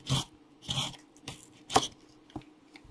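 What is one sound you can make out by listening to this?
A blade slices through packing tape on a cardboard box.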